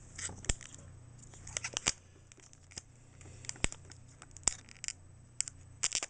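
Scissors snip through a foil wrapper.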